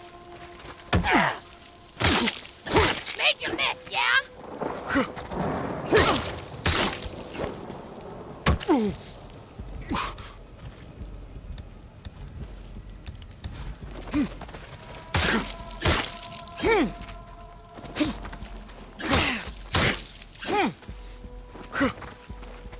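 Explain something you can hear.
Men grunt and yell in pain during a fight.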